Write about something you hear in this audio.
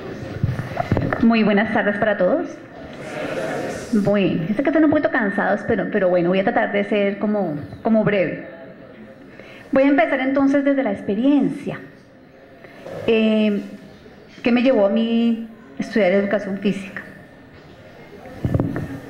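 A woman speaks calmly into a microphone through loudspeakers.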